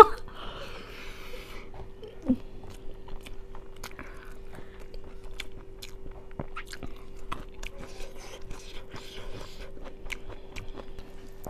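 Fingers squish and rustle through rice on a plate.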